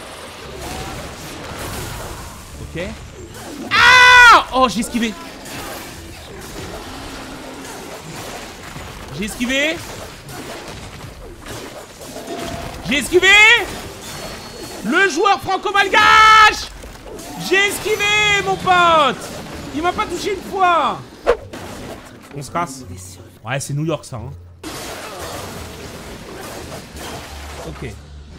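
Blades slash and strike in a fierce fight.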